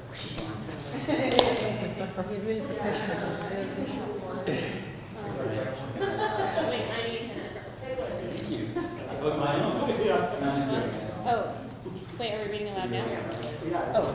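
A woman speaks with animation to an audience in a large room.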